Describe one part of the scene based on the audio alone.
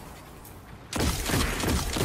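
Energy beams crackle and hum.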